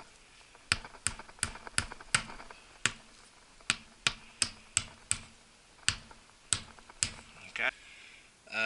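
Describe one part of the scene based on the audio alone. A hammer taps sharply on a rubber tyre, again and again.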